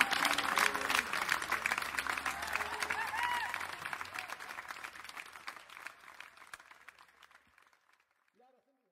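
A large crowd applauds outdoors, then the clapping slowly dies away.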